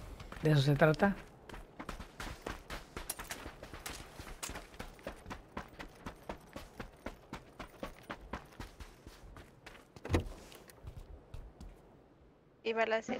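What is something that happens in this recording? Footsteps patter quickly on dirt and floor.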